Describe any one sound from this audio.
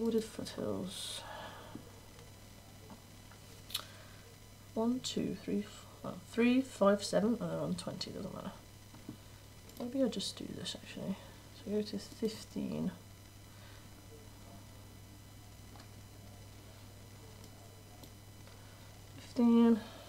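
A young woman talks into a microphone in short bursts.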